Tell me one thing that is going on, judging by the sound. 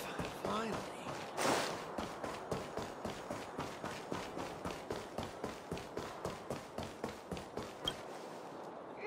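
Quick footsteps run over hard stone.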